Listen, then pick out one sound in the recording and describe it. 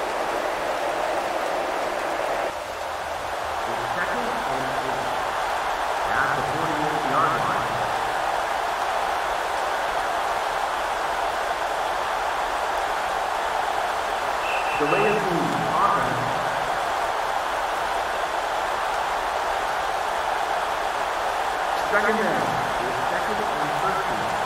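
A stadium crowd roars steadily in the background.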